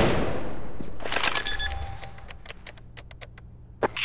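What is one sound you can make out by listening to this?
A bomb keypad beeps with short, quick electronic tones as buttons are pressed.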